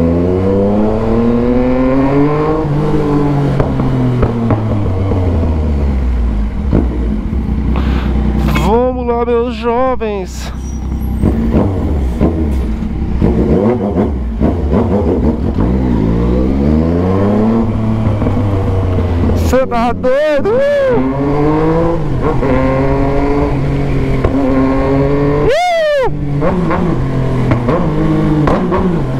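A motorcycle engine revs up and down as the bike rides along.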